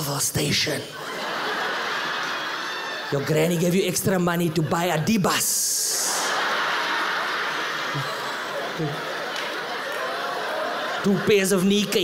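An audience laughs loudly.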